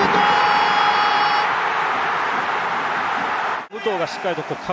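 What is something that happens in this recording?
A large crowd roars and cheers loudly in a stadium.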